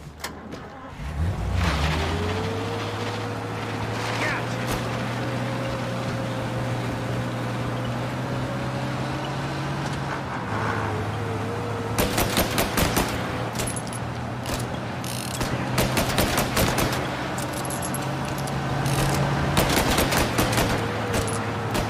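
An old car engine starts and runs steadily.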